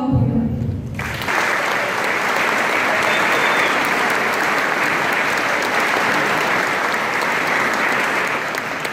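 A crowd applauds loudly in an echoing hall.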